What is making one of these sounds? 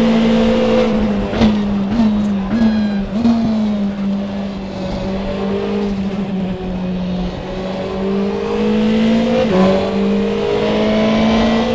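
A racing car engine drops in pitch as the car brakes and downshifts.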